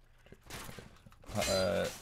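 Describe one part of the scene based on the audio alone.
A sword swings and strikes with a metallic clash.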